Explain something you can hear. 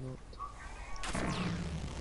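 A lightning bow fires with an electric crackle.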